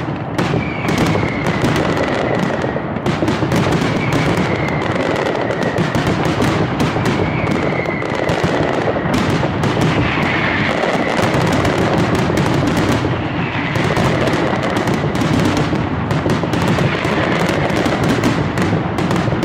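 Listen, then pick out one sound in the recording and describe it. Firecrackers bang in a rapid, deafening barrage.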